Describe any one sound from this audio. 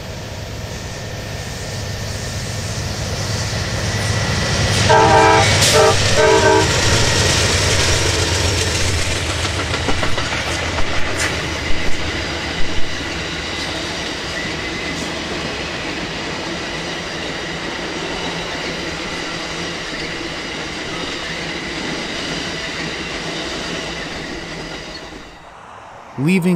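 A diesel train engine rumbles loudly as a train approaches and passes close by.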